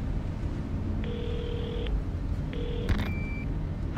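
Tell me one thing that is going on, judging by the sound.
A radio beeps with short steady electronic tones.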